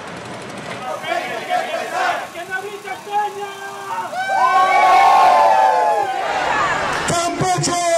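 A crowd of marching men chants and shouts outdoors.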